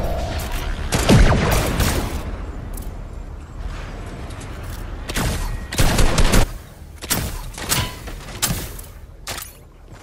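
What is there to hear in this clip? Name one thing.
Gunshots fire in bursts with a sharp crack.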